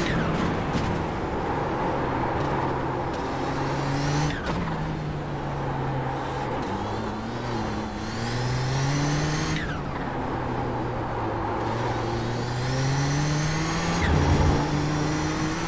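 A race car engine roars, revving up and down through gear shifts.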